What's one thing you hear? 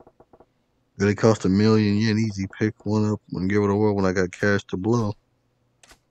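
A man speaks calmly and close up, in a low voice.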